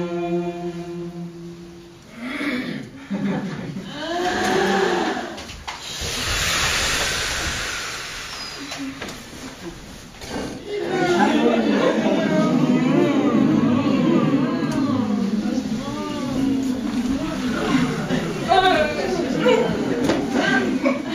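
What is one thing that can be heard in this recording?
A group of men and women sing together in a room.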